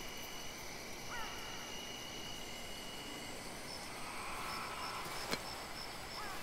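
Birds chirp outdoors.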